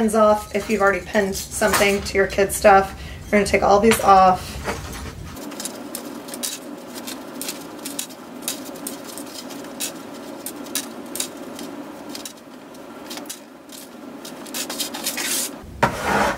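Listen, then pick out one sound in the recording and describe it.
Fabric rustles as a woman handles an apron.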